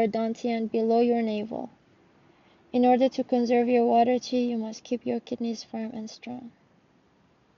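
A young woman talks close by, with animation.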